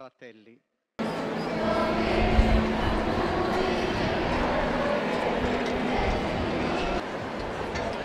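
A children's choir sings with a violin.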